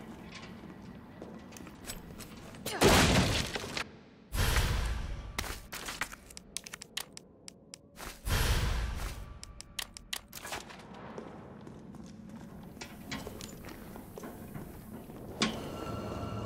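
Footsteps scuff on a hard floor.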